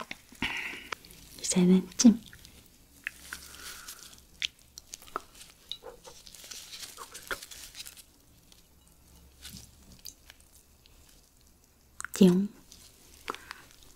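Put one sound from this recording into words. Food squelches and tears as a young woman pulls it apart with her hands.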